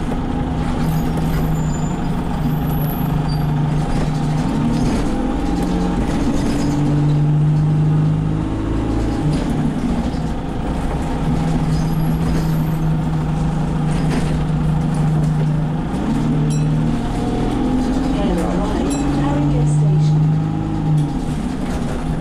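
Fittings inside a bus rattle and clatter as it drives.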